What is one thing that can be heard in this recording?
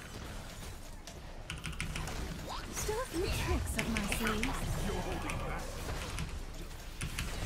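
Video game battle effects clash and zap.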